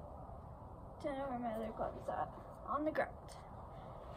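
A girl speaks briefly, close by.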